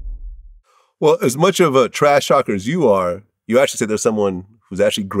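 A man speaks clearly and with animation, close to a microphone.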